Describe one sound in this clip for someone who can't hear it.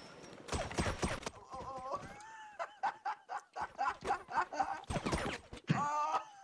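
Gunshots ring out in short, sharp bursts.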